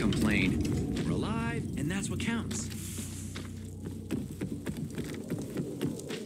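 Footsteps thud on wooden steps.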